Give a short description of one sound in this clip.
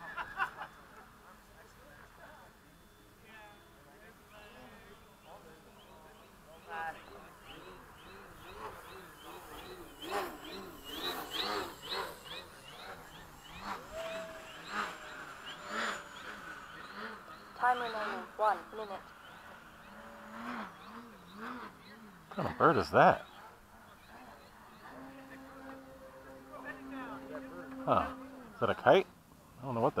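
A small model plane's motor whines, its pitch rising and falling.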